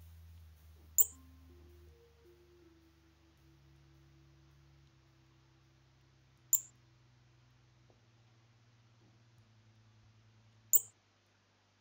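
A short bright chime sounds several times.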